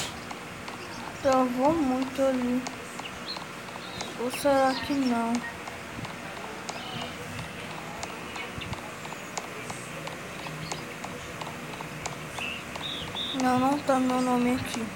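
A game character's footsteps patter as it runs.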